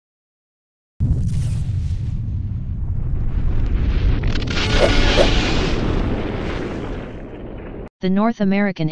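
A huge explosion booms and rumbles deeply, slowly fading away.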